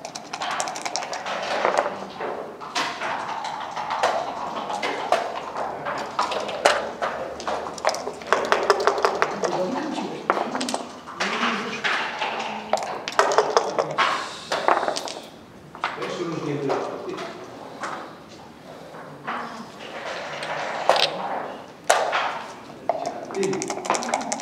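Dice rattle in a cup and clatter onto a board.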